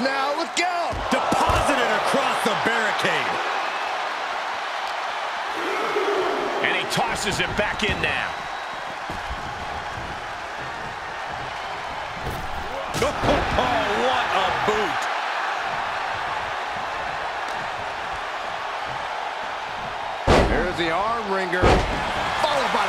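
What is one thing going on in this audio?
Heavy bodies slam hard onto a wrestling mat with loud thuds.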